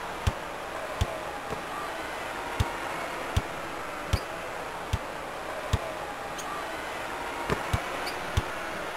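A basketball bounces steadily on a hardwood court.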